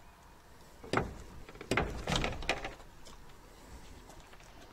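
A metal gate bolt slides open with a clack.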